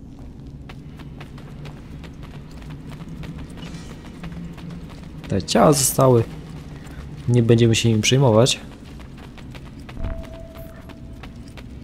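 Footsteps run on a stone floor.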